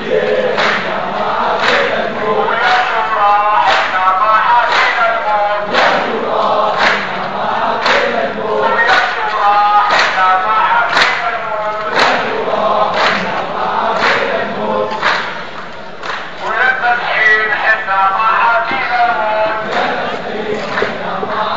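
A crowd of men claps in a steady rhythm.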